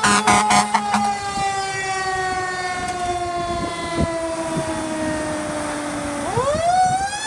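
A fire truck's air horn blares loudly as it passes close by, dropping in pitch.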